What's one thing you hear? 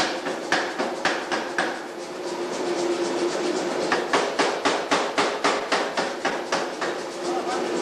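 A hammer strikes red-hot metal in quick, ringing blows.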